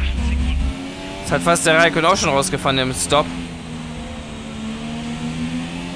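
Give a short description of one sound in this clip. A racing car engine whines steadily and slowly drops in pitch as the car slows.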